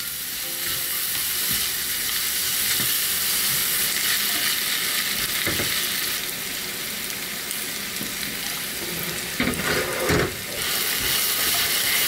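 A spatula scrapes and stirs in a frying pan.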